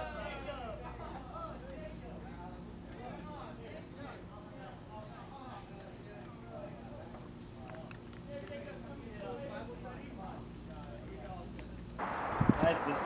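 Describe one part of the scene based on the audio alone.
Young men talk casually outdoors at a distance.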